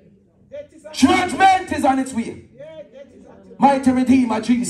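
A man speaks with animation over a loudspeaker, echoing through a large hall.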